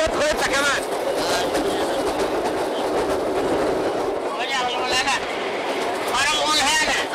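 A middle-aged man speaks loudly and with animation, close by.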